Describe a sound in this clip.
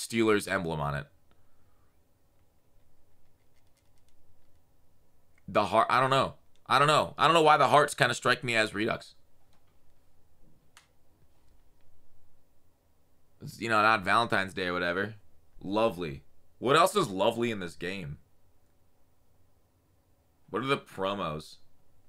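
A young man talks casually and with animation into a close microphone, in short bursts with pauses.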